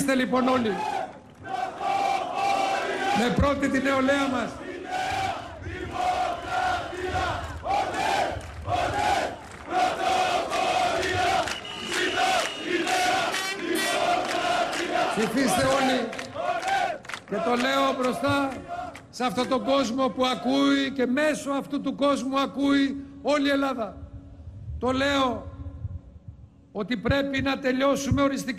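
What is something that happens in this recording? A man speaks forcefully into a microphone over loudspeakers, echoing outdoors.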